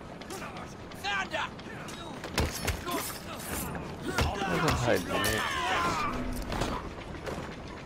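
Punches land with heavy thuds in a fight.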